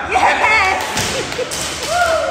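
A barbell is dropped and bangs on a rubber floor.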